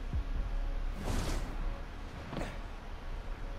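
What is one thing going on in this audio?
A rushing whoosh sweeps past.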